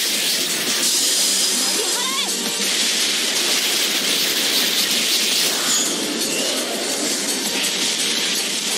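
Energy blasts whoosh and crackle in rapid succession.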